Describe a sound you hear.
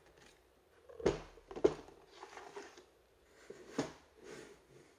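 Plastic battery packs knock down onto a hard table.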